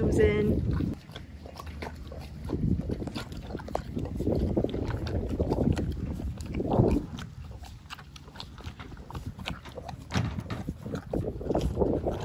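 A horse licks and slurps from a small tub.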